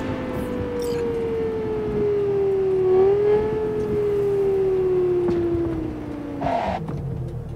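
A car engine hums and whines as it slows down.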